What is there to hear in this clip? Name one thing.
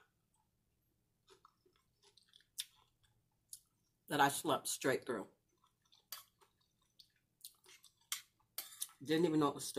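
A woman chews and smacks food close to a microphone.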